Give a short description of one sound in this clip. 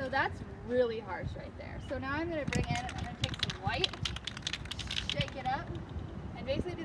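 A young woman talks calmly nearby.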